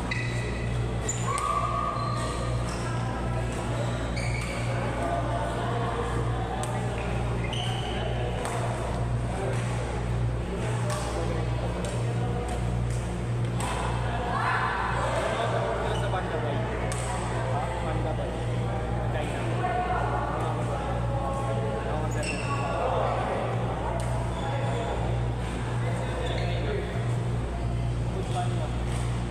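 Shoes squeak and thud on a court floor.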